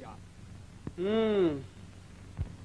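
A woman speaks briefly.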